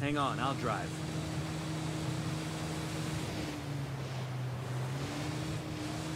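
Water splashes against a speeding boat's hull.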